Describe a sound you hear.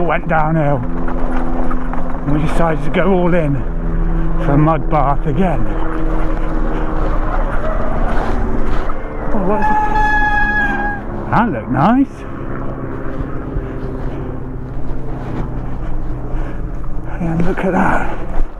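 Bicycle tyres roll and squelch over a muddy track.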